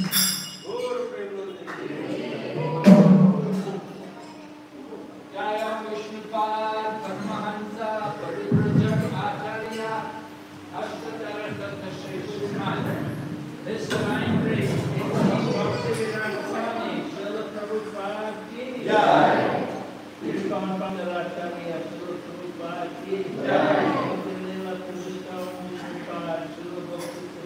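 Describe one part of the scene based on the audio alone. A group of men and women sing a chant together.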